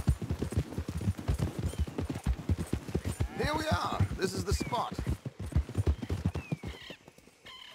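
Horses' hooves thud steadily on a dirt path.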